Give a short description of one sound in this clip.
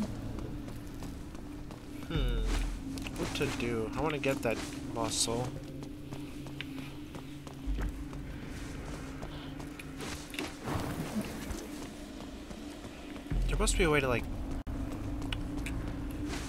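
Footsteps run quickly on a metal floor.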